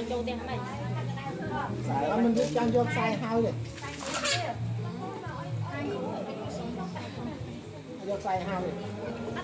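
A group of men and women talk and call out over one another close by, outdoors.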